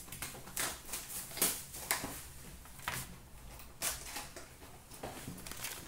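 Cardboard packs rustle and slide against each other.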